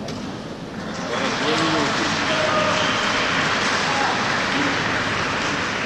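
A man calls out in a large echoing hall.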